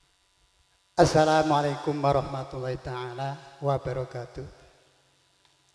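An elderly man sings into a microphone through loudspeakers, outdoors.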